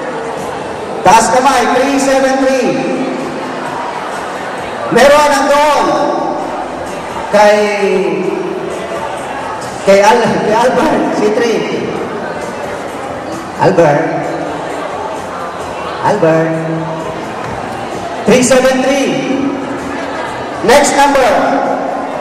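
A man shouts into a microphone over loudspeakers, in bursts, in a large echoing hall.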